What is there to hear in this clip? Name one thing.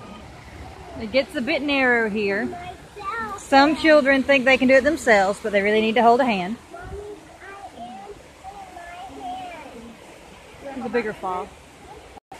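A young child talks excitedly up close.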